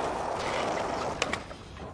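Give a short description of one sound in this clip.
A skateboard lands with a sharp clack.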